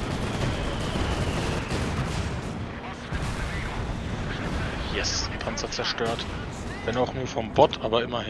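Battle noise rumbles low and steady, with distant blasts.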